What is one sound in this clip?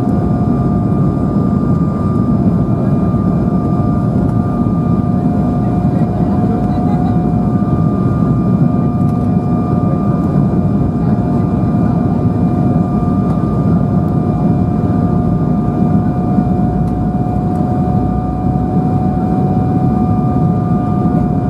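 Air rushes past the aircraft in a steady low rumble.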